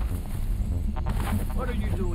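Leafy bushes rustle as someone pushes through them.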